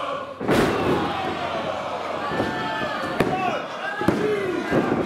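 A wrestler thuds onto a ring mat.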